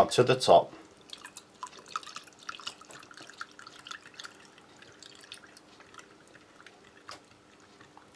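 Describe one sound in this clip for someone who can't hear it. Water pours from a jug into a cup.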